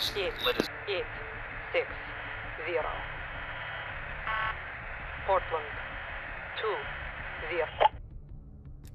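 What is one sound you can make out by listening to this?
A radio hisses with crackling static.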